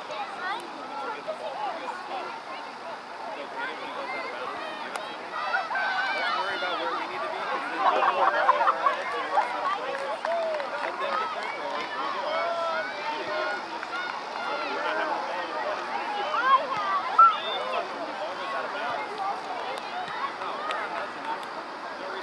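Players call out to one another across an open field.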